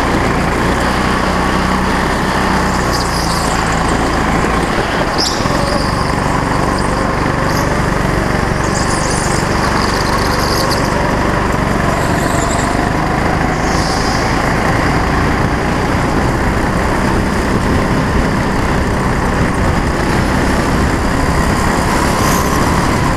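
A go-kart engine buzzes loudly up close, revving through the bends.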